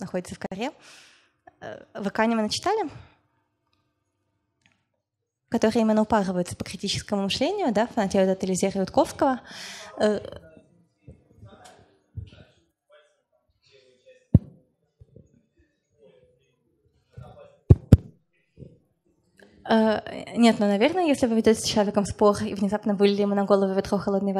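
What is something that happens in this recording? A young woman speaks calmly through a microphone, with pauses.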